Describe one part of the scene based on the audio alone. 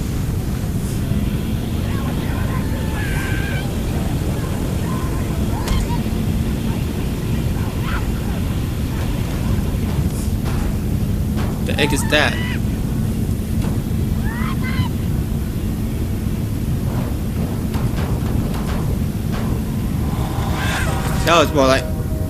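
A vehicle engine roars steadily.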